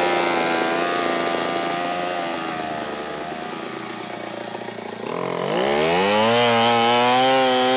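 A chainsaw engine idles, then revs up loudly.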